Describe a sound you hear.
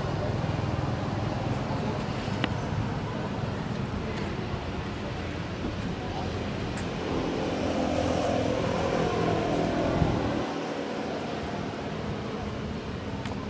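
A monkey chews and munches on food close by.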